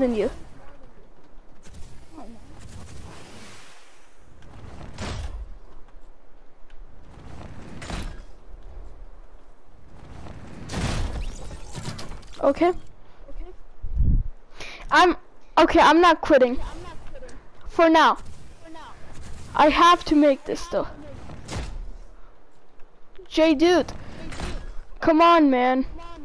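A game character lands with soft thuds and whooshes.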